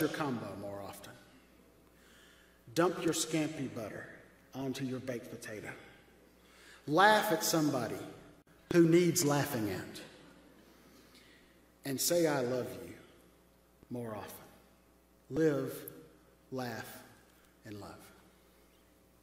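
A middle-aged man speaks slowly and solemnly through a microphone in a large echoing hall.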